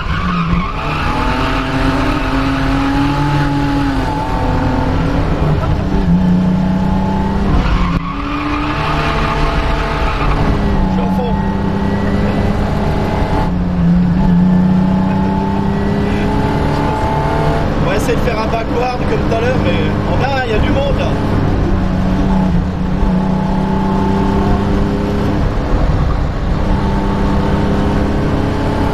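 A car engine roars loudly up close, revving up and down as the car races and drifts.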